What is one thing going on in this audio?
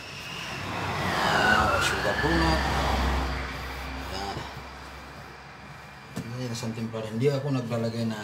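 Hands knead and slap soft dough on a metal counter.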